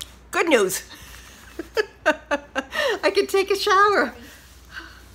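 An older woman laughs loudly.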